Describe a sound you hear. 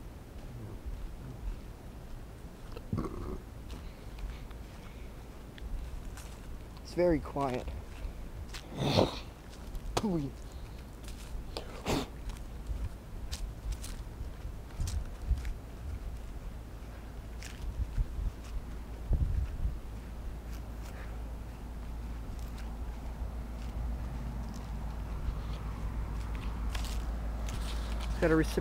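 Footsteps crunch through dry leaves and grass.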